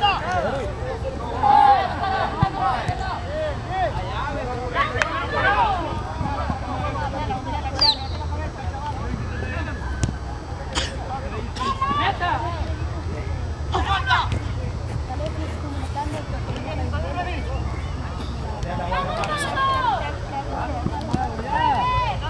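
Young men shout and call out across an open field outdoors.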